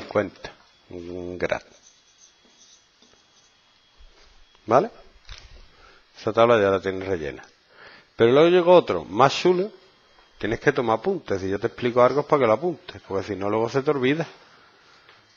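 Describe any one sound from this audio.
A man speaks calmly through a headset microphone, explaining.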